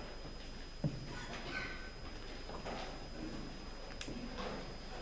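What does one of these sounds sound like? A man speaks quietly at a distance in a large echoing hall.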